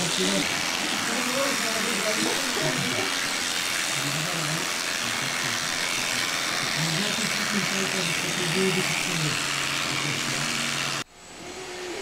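Electric shears buzz steadily while clipping fleece.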